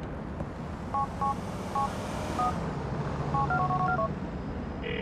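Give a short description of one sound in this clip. A mobile phone beeps as its keys are pressed.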